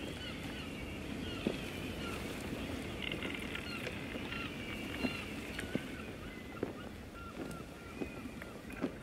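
Sea waves wash softly against a sailing ship's hull.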